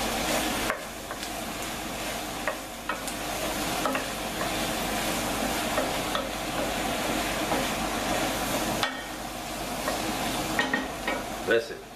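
A wooden spoon scrapes and taps against a pan.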